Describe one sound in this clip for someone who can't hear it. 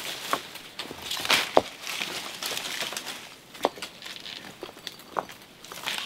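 A tool scrapes and digs into soil.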